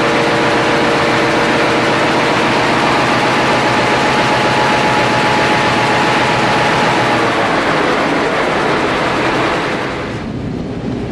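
A large diesel engine roars loudly and steadily.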